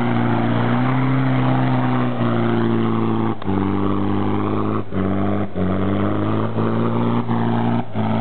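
Tyres churn and slip in soft mud.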